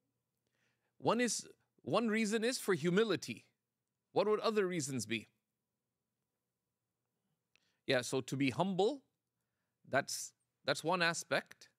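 A middle-aged man speaks calmly and clearly into a close microphone, with pauses between phrases.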